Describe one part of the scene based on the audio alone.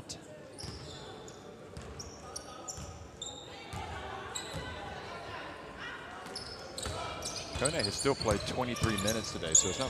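Sneakers squeak on a hardwood court in a large echoing hall.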